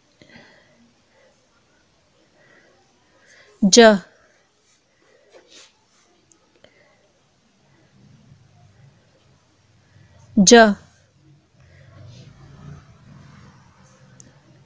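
A pencil scratches on paper.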